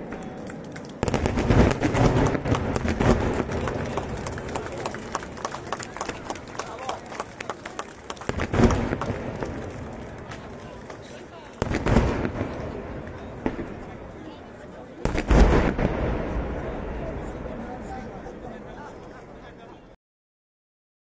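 Heavy aerial shells burst with deep booms that roll away across the valley.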